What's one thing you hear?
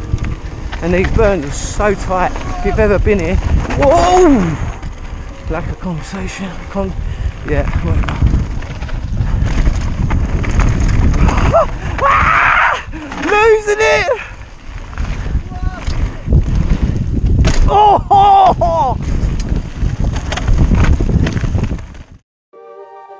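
Bicycle tyres crunch and rattle over a dirt trail.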